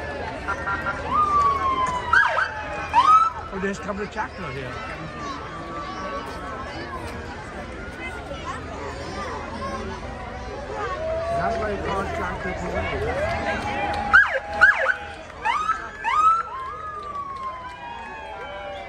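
A police siren whoops in short bursts close by.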